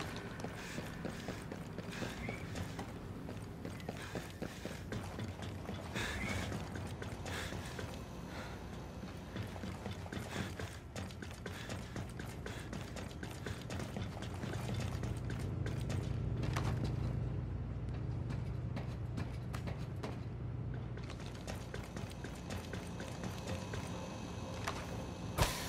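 Footsteps clank on metal stairs and walkways.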